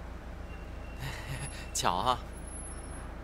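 A young man speaks cheerfully and teasingly, close by.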